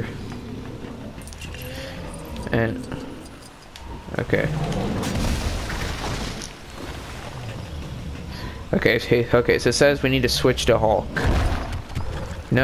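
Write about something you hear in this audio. Sand and rocks swirl with a rushing roar.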